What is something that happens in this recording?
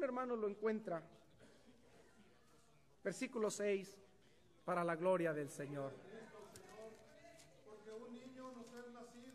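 A man reads aloud calmly through a microphone in an echoing hall, with pauses between phrases.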